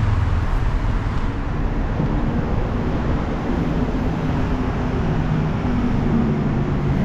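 Traffic rumbles steadily on a road below.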